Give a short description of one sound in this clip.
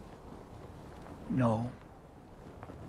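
A man speaks softly and calmly nearby.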